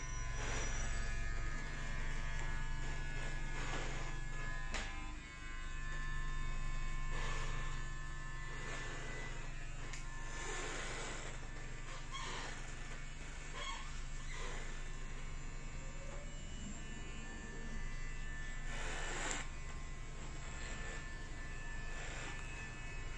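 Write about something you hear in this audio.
A razor blade scrapes softly across a scalp.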